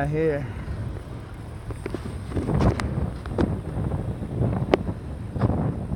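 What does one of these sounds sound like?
A bicycle rolls over asphalt.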